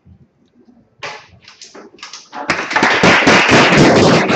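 People applaud, clapping their hands.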